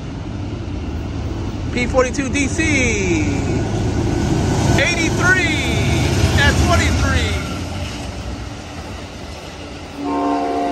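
A train rumbles closer and passes by.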